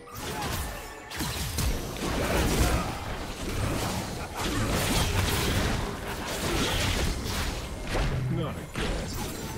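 Spell effects whoosh and crackle in a fast video game fight.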